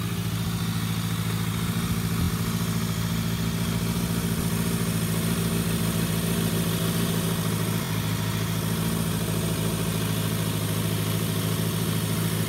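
A four-cylinder sport bike engine idles.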